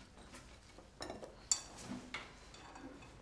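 Cups and dishes clink on a table.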